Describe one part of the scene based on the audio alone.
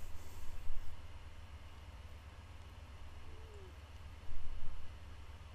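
A man murmurs quietly close to a microphone.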